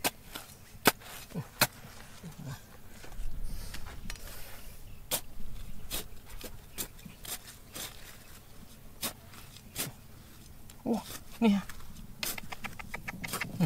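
Loose soil and pebbles trickle and patter down.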